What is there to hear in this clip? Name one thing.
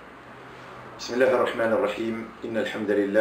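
A middle-aged man speaks calmly and steadily into a close microphone.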